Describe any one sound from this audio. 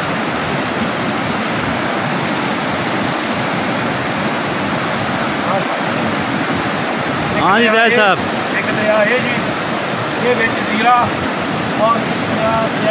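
A river rushes loudly over rocks nearby.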